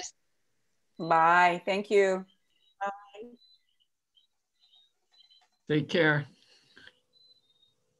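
An older woman speaks warmly over an online call.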